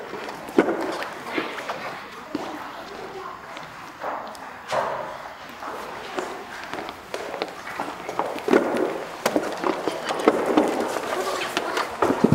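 Footsteps shuffle on a hard floor nearby.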